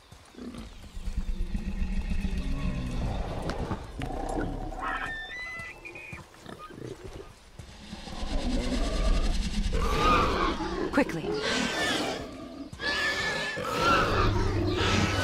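A large beast grunts and squeals close by.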